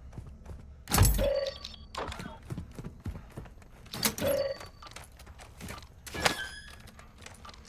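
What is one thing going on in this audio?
Items are grabbed with short, sharp clattering sounds.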